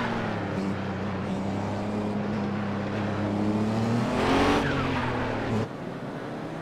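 A racing car engine roars loudly at high revs, rising in pitch.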